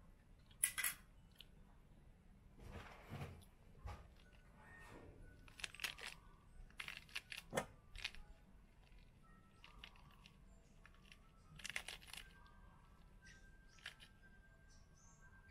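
Pomegranate seeds patter into a metal bowl.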